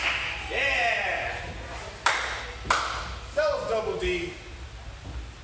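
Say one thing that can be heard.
A man calls out dance counts in a room with some echo.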